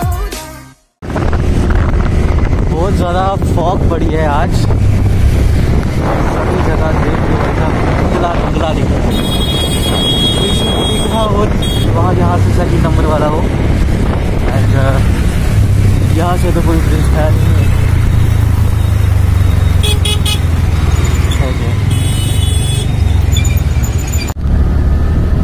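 A motorcycle engine hums steadily.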